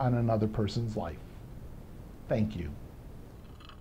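A middle-aged man speaks calmly and clearly into a microphone nearby.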